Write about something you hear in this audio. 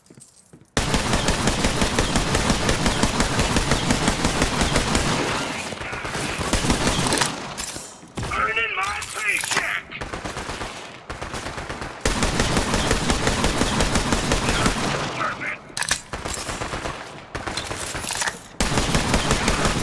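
Automatic guns fire in rapid bursts.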